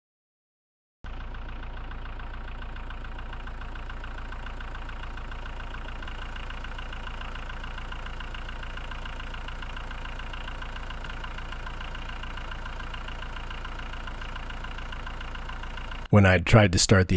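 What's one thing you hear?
A tractor engine runs with a steady hum.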